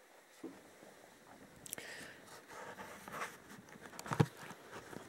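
Footsteps thud on a wooden floor close by.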